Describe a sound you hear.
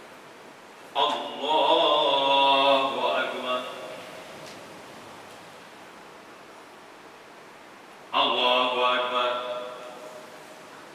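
An elderly man chants a call through a microphone in an echoing hall.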